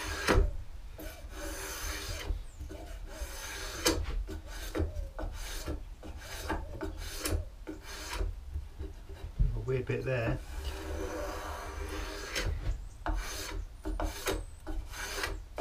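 A hand tool shaves wood in quick rasping strokes.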